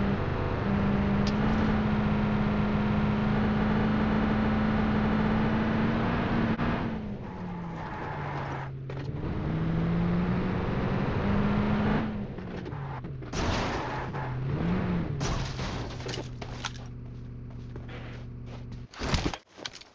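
A truck engine roars steadily, its pitch rising and falling as it speeds up and slows down.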